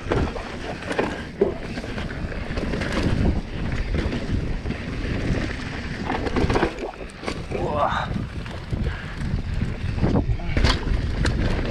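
A bicycle frame rattles and clanks over bumps.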